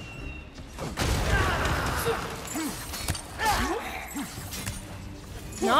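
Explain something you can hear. Metal weapons clash and thud in a fight.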